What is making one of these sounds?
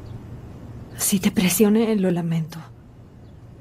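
A woman speaks softly and hesitantly, close by.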